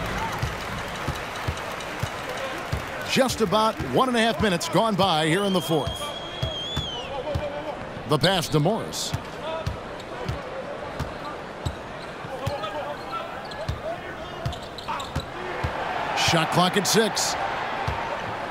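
A large crowd murmurs in an echoing arena.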